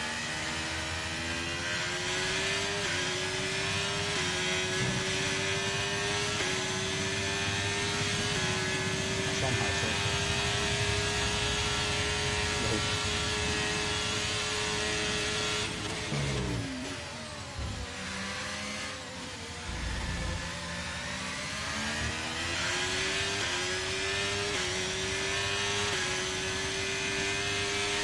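A racing car engine screams loudly, climbing through the gears.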